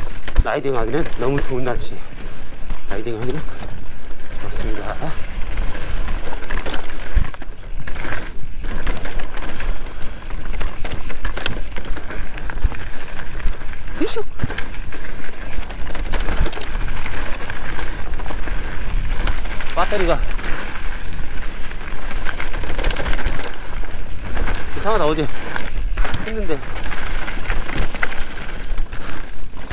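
Bicycle tyres rumble and crunch over rock and dirt.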